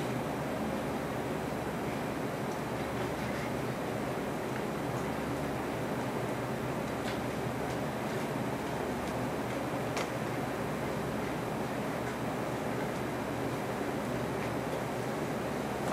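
An elderly man speaks quietly into a microphone.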